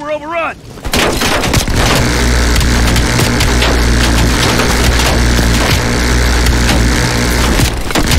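A heavy rotary machine gun fires in a long, rapid, roaring burst.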